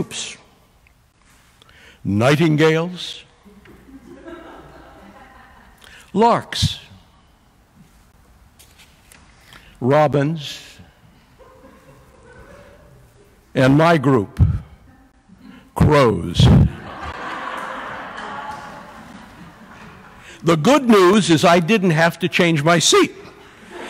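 A middle-aged man speaks into a microphone with emphasis, in bursts with pauses, in an echoing hall.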